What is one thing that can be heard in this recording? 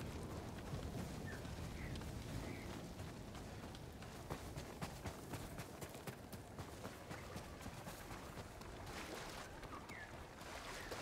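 Wind blows steadily.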